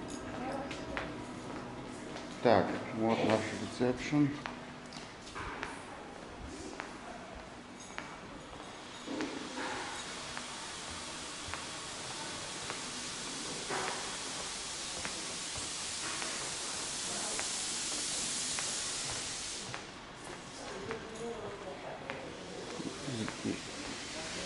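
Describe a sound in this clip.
Footsteps tap on a hard floor in a large echoing hall.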